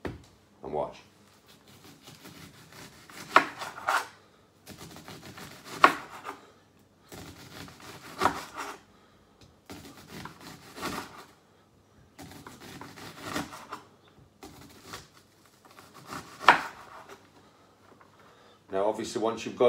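A knife chops on a cutting board with sharp knocks.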